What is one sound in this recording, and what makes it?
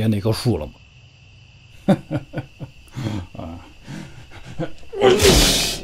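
A man speaks with a gruff, sly voice, close to the microphone.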